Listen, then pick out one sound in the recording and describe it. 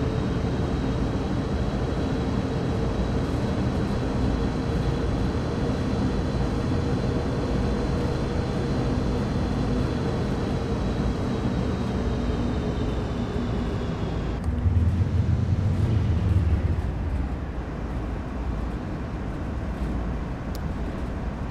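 Train wheels clatter and roll over the rails.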